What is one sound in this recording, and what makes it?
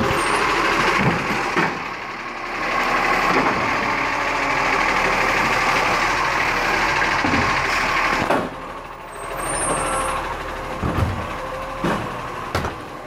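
Bins thud and clatter.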